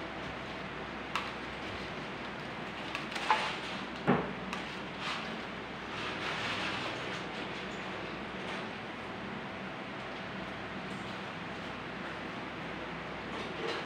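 A sheet of paper rustles and crinkles in hands.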